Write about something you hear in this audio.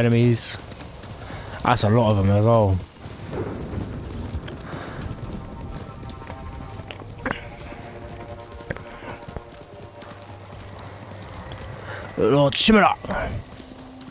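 A horse gallops over soft ground.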